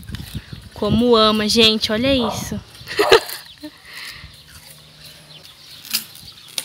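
A dog chews on something with its mouth.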